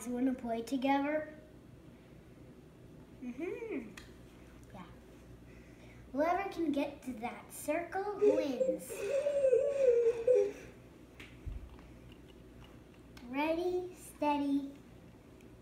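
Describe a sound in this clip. A young boy talks excitedly nearby.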